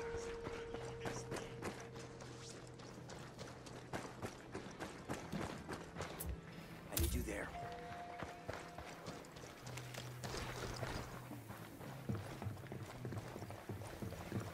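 Footsteps crunch quickly over gravel and dirt.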